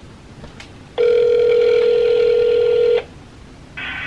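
A phone beeps with a steady tone from its speaker.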